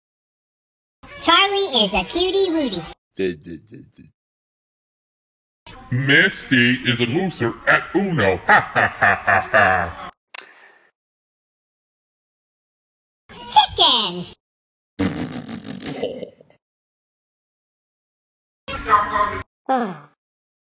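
A second cartoon character speaks in a high-pitched, squeaky voice.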